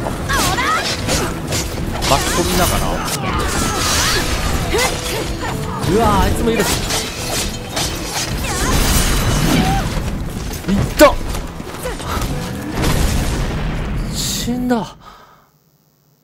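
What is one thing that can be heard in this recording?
Blades slash and clash in a fierce fight.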